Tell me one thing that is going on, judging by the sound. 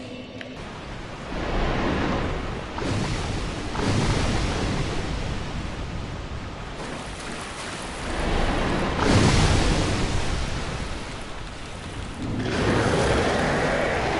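Water splashes as a figure wades through it.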